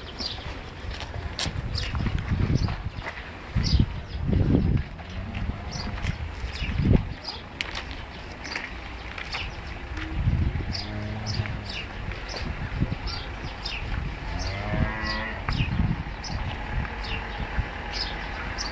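Hooves scuff and shuffle on dry dirt.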